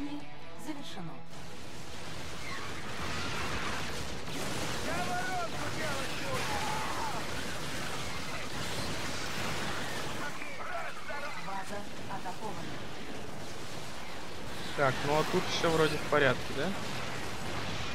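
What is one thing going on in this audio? Weapons fire in rapid bursts during a battle.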